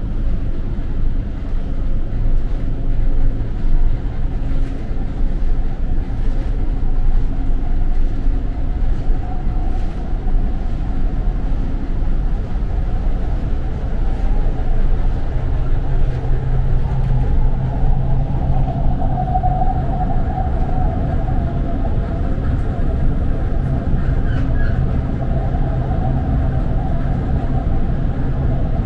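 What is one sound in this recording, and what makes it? A train rumbles and hums steadily as it rolls along the tracks.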